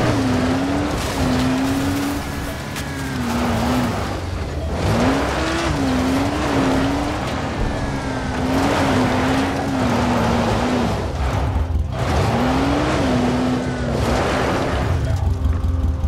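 Tyres crunch over gravel and rough ground.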